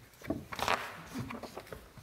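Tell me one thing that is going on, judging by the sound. Paper rustles close by.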